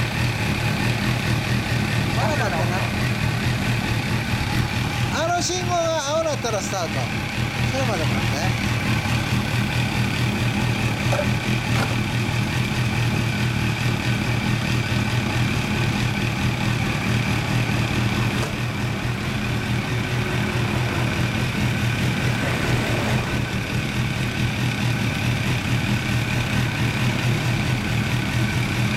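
Motorcycle engines idle with a steady low rumble.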